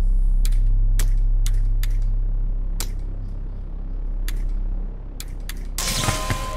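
Game puzzle pieces click as they rotate.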